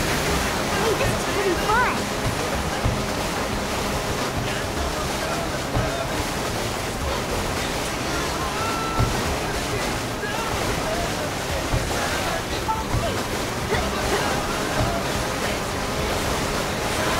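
Water sprays and splashes against a jet ski.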